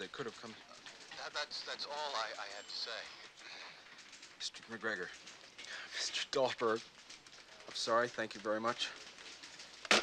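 A man speaks urgently into a telephone, close by.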